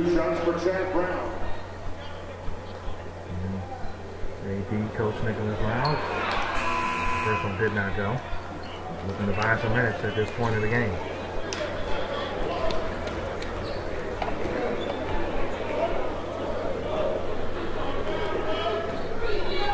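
A crowd murmurs and chatters in a large echoing gym.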